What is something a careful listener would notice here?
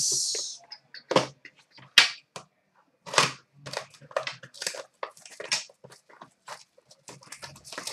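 Cards and a box tap and click on a glass counter.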